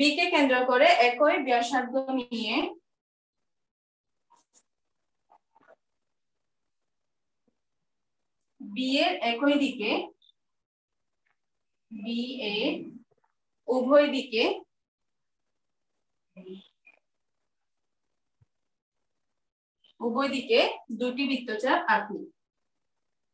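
A woman speaks calmly and clearly nearby in short phrases.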